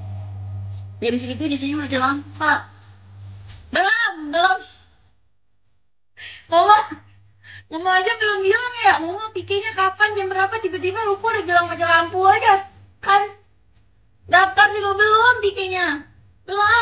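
A young woman talks casually and with animation, close to a microphone.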